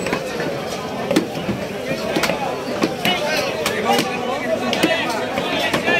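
A cleaver chops through meat and bone onto a wooden block with sharp thuds.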